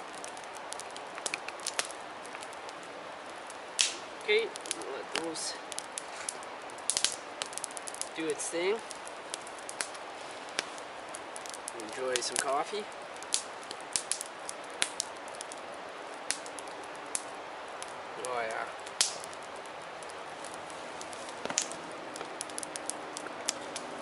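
A campfire crackles and pops close by.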